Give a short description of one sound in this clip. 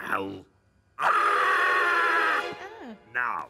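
A man shouts loudly in a long, strained cry.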